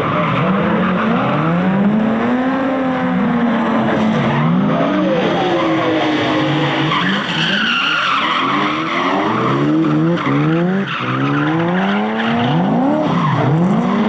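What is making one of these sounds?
Car engines rev hard and roar, rising and falling in pitch.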